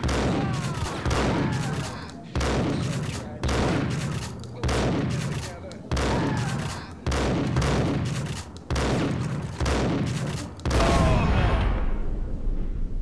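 A shotgun is pumped with a metallic clack after shots.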